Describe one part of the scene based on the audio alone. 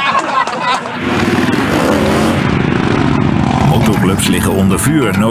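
Many motorcycles rumble past.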